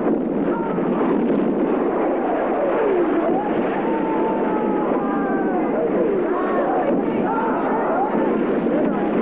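Explosions roar into fireballs.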